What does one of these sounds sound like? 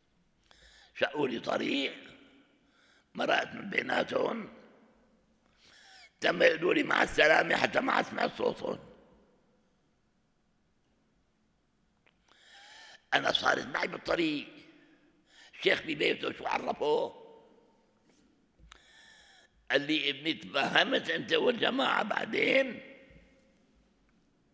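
An elderly man speaks calmly into a microphone in bursts, with pauses between phrases, in a slightly echoing room.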